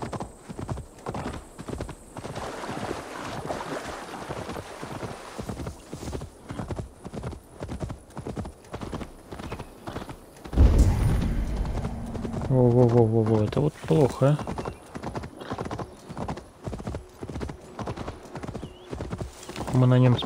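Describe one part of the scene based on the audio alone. A horse gallops with quick, rhythmic hoofbeats.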